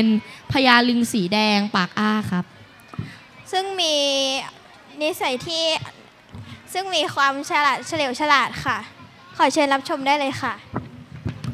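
A boy speaks through a microphone and loudspeakers.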